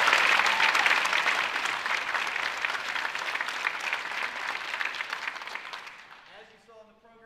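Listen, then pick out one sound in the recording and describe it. An audience applauds loudly in a large hall and the applause fades.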